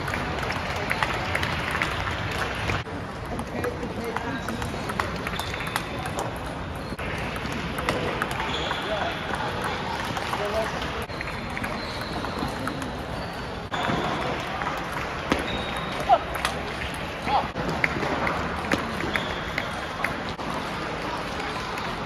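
A table tennis ball clicks back and forth off paddles and the table in a large echoing hall.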